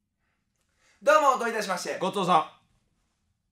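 A young man calls out with a raised voice.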